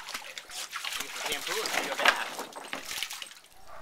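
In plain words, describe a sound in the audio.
Water sprays and splashes against a plastic pool wall.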